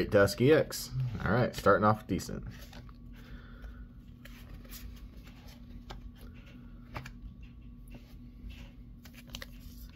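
Trading cards are flicked and shuffled by hand.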